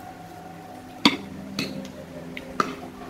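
Chopsticks and a spoon clink against bowls.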